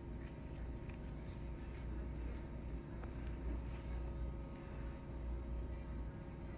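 Gloved hands rustle softly against paper gauze.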